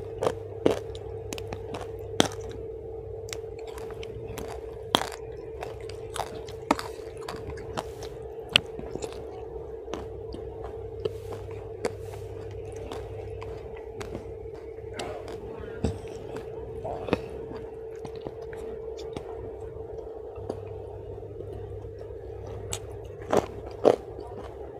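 A woman chews food with wet, crunchy sounds close to a microphone.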